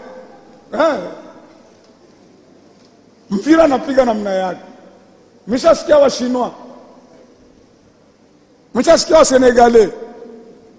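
An elderly man speaks forcefully into a microphone in short bursts, echoing in a large hall.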